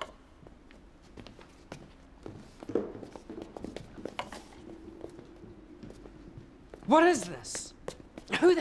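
A young man answers in a low, firm voice.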